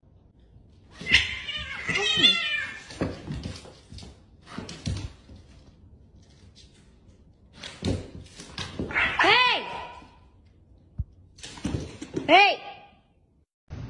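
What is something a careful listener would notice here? Cats yowl loudly while play-fighting.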